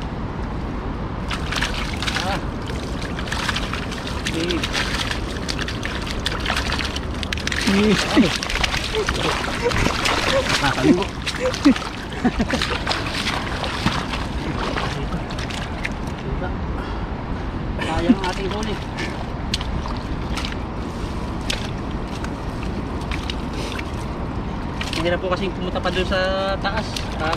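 Fish flap and splash in shallow water.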